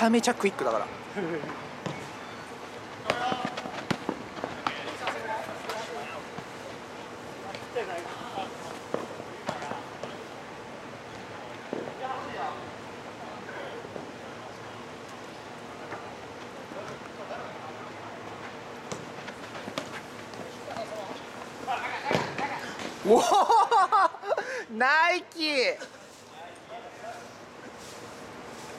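A football thuds as players kick it.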